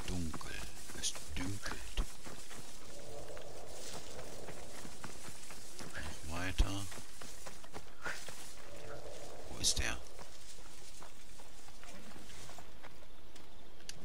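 Tall dry grass rustles as someone pushes through it.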